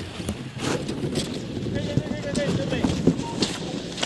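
Ski poles click and crunch into packed snow.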